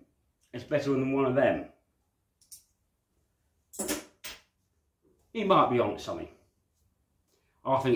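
A middle-aged man talks calmly and close up, in short bursts.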